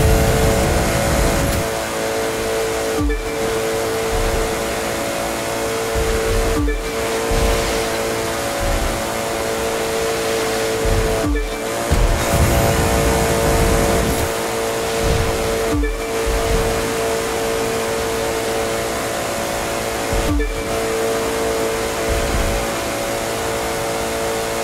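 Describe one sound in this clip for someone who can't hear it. A sports car engine roars steadily at high speed, with brief dips in pitch every few seconds.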